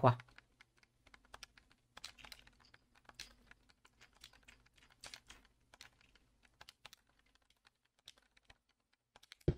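Soft clicks tap as items are moved around.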